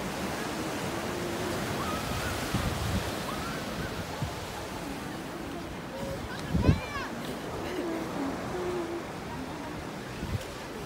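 Waves wash steadily onto a beach nearby.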